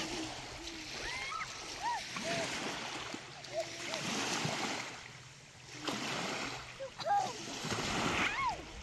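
Young children call out and chatter at a distance.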